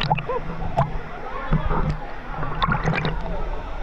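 A young man talks near the water's surface.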